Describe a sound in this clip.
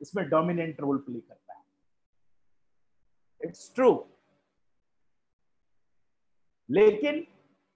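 A middle-aged man speaks with animation over an online call, in short bursts with pauses.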